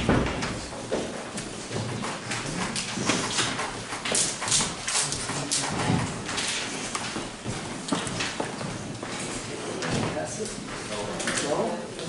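Paper sheets rustle and crackle.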